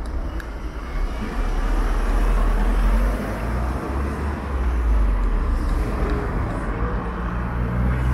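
Cars drive past on the road nearby.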